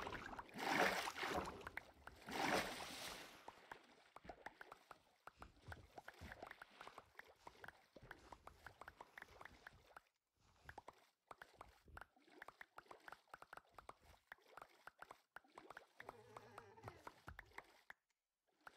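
Water splashes repeatedly as a swimmer paddles along.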